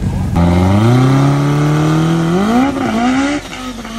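Tyres screech as they spin on the track.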